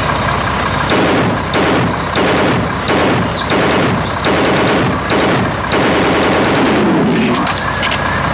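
A rifle fires several loud shots in quick succession.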